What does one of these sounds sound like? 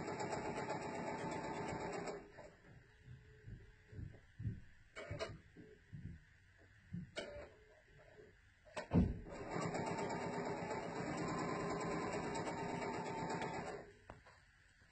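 A sewing machine runs in steady bursts.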